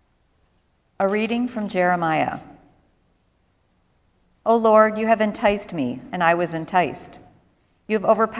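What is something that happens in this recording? A congregation sings a hymn together in phrases, in a large room.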